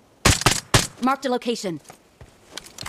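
A young woman speaks with animation into a microphone.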